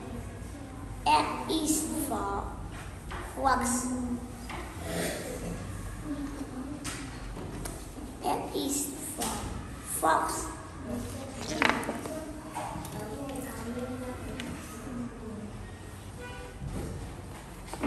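A young boy speaks clearly and slowly, close by, as if reading out a story.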